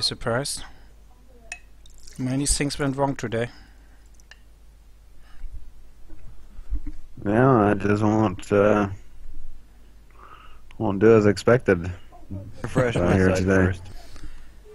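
A young man talks casually into a microphone in short bursts.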